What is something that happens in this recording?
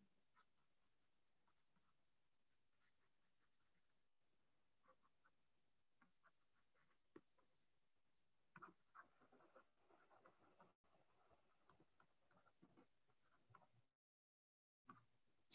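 A pen scratches lightly while writing.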